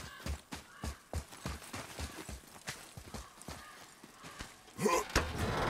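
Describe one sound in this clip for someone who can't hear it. Heavy footsteps crunch steadily over snowy ground.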